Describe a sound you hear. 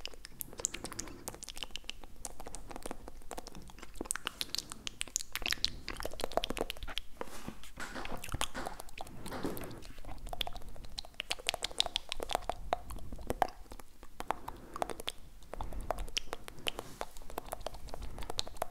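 A man whispers softly and very close into a microphone.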